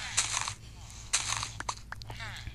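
Sand blocks crunch as they are broken.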